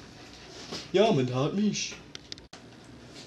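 A young man talks on a phone nearby.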